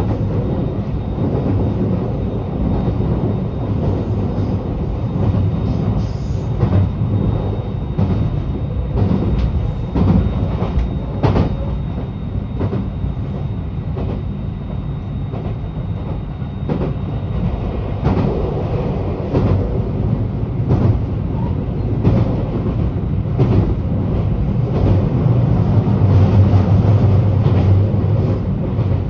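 A vehicle engine hums steadily from inside a moving car.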